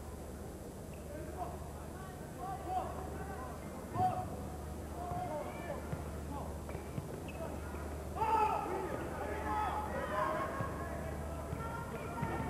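Sneakers squeak sharply on a hard floor.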